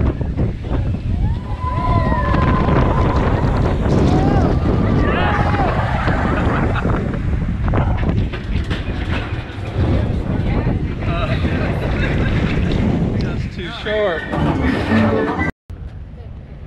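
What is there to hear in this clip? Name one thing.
A roller coaster train rattles and roars along its track.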